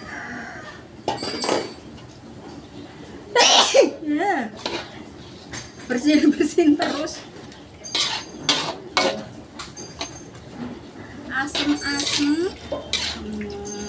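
A metal spatula scrapes and clanks against a metal wok.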